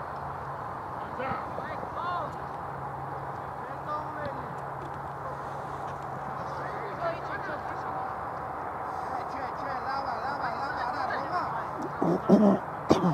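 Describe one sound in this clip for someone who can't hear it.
Young men shout to each other across an open field, heard from a distance.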